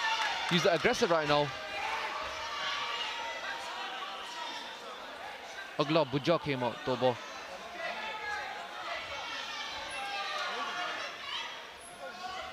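A crowd murmurs and calls out in a large hall.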